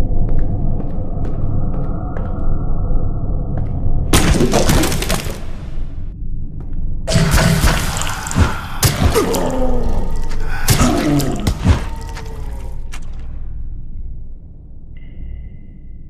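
Footsteps thud on creaky wooden floorboards.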